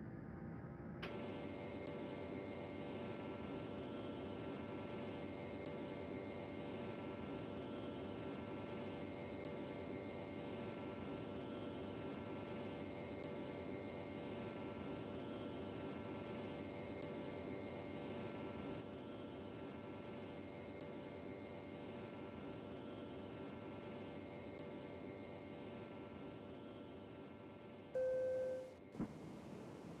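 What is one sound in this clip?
Jet engines roar steadily during a takeoff roll.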